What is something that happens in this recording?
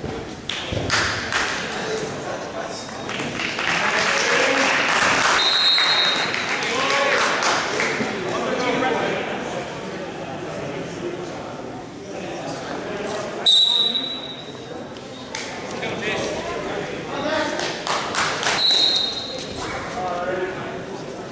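A crowd of spectators shouts and cheers in an echoing gym.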